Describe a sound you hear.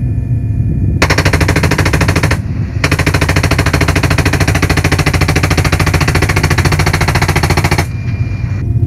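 A machine gun fires rapid, sustained bursts close by.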